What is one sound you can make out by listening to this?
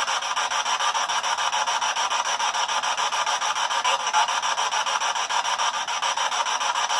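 A handheld radio rapidly sweeps through stations, spitting out choppy bursts of static.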